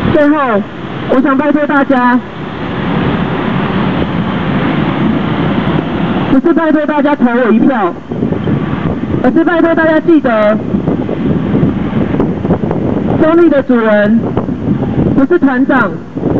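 A young man shouts into a microphone, heard loudly through a loudspeaker outdoors.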